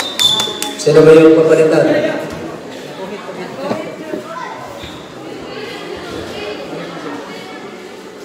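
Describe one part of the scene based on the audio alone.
A crowd of spectators chatters and calls out nearby.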